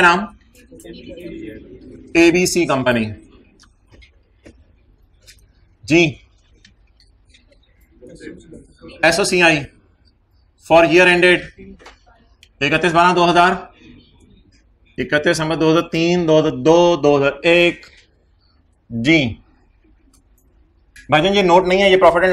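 A man speaks steadily through a microphone, like a lecturer explaining.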